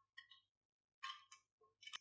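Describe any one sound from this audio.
Glass marbles clink softly inside a plastic jar.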